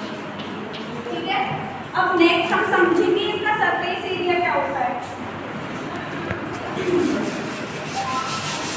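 A woman speaks calmly and clearly, a little way off.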